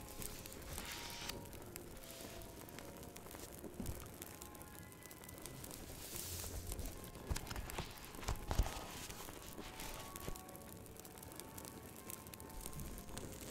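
Book pages flutter and turn.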